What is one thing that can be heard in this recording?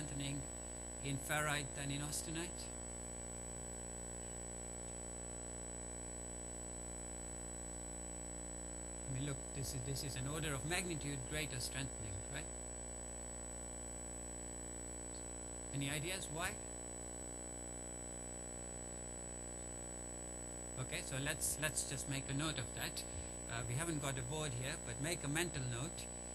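A man lectures calmly through a microphone in a large room, pausing often.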